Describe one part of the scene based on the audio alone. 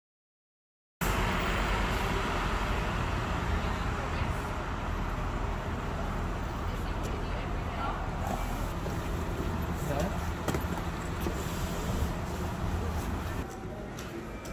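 A bus engine idles nearby outdoors.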